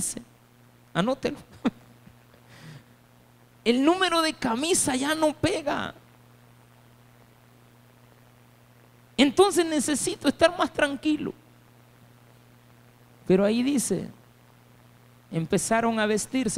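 A man speaks with animation into a microphone, heard through loudspeakers, with pauses between phrases.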